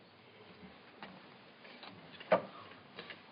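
A wooden chair knocks and creaks.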